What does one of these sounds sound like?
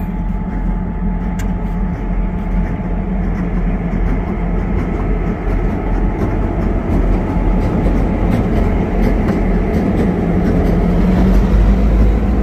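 Train wheels clatter over the rails as the train passes close by.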